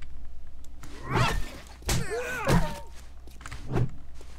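A dog snarls and growls close by.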